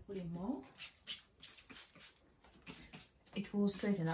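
A spray bottle hisses in quick squirts.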